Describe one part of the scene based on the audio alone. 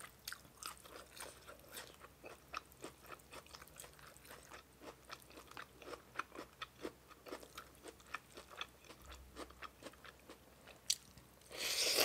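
Noodles squish and squelch wetly between fingers, close up.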